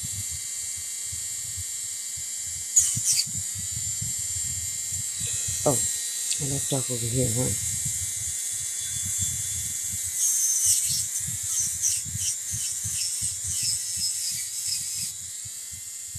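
A small rotary tool whirs as it polishes metal.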